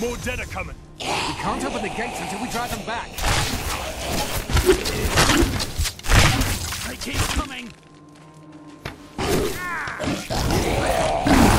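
Blows strike and slash in a fierce fight.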